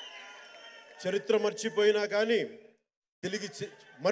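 A man speaks loudly into a microphone over loudspeakers in a large hall.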